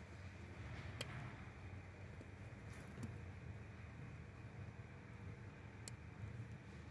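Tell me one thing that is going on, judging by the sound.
Small metal engine parts click faintly.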